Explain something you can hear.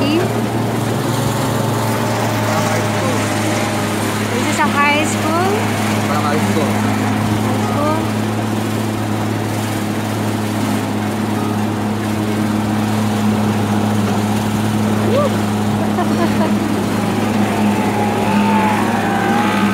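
An outboard motor drones steadily close by.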